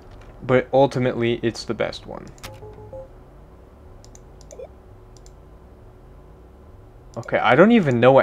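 Short electronic menu blips sound as options change.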